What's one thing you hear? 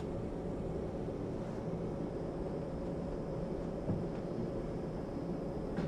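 Footsteps walk softly along an aisle.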